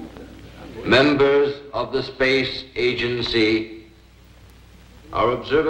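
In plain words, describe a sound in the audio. A middle-aged man speaks out loud to a hall.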